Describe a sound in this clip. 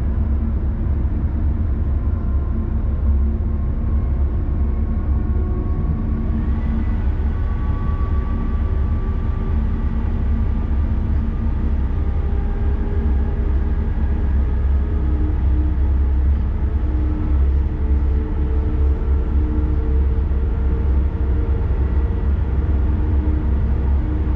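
A train's motor hums with a slowly shifting whine.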